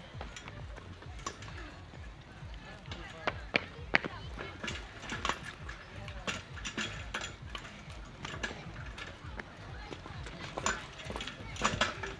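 Children's hands and feet knock on a wooden climbing frame.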